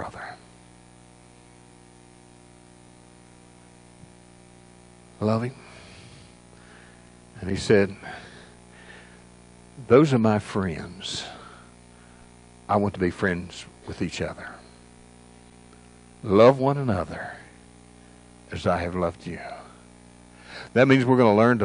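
An elderly man speaks calmly and slowly through a microphone in a large echoing room, pausing often.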